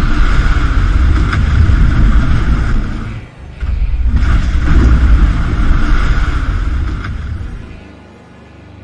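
A whale splashes loudly in the sea.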